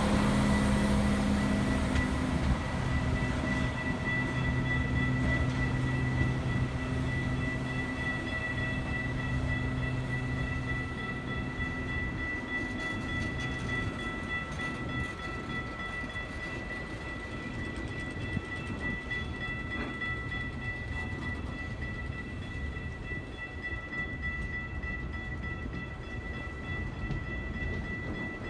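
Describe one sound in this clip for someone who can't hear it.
Train wheels squeal with a steady high whine.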